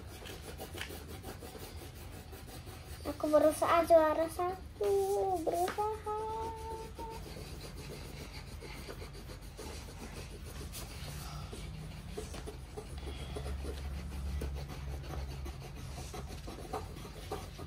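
Crayons scratch softly on paper.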